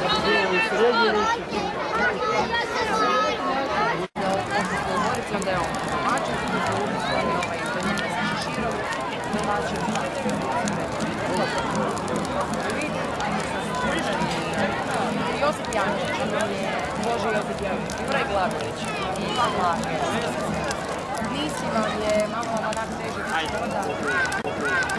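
A large crowd chatters and calls out outdoors.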